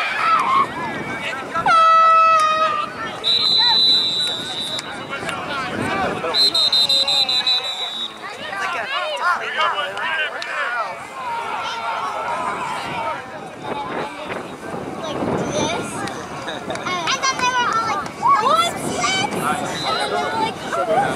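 Children and adults shout and call out across an open field.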